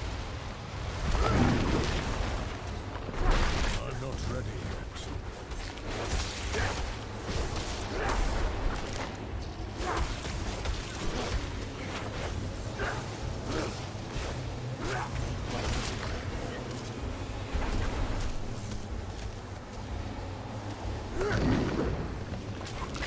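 Spell blasts and weapon strikes crash repeatedly in a video game battle.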